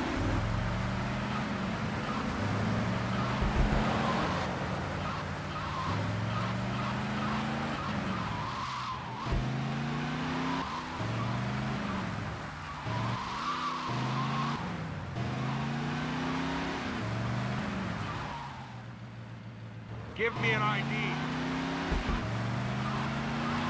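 A car engine revs up and shifts through its gears again and again.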